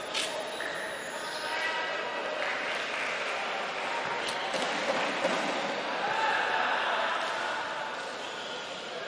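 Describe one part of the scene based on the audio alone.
A crowd cheers and chatters in a large echoing hall.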